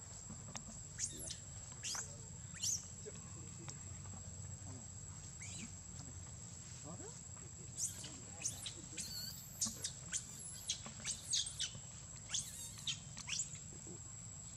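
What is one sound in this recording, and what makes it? A baby monkey squeals in high, shrill cries.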